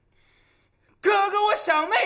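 A young man shouts loudly in an echoing room.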